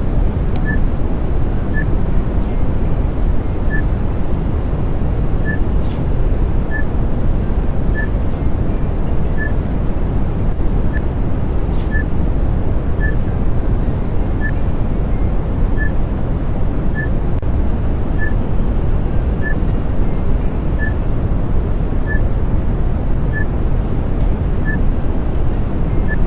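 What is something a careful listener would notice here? A short electronic beep sounds at each floor passed, at an even pace.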